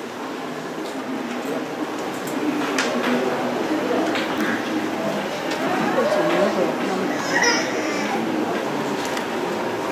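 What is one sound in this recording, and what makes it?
A string quartet plays a flowing piece.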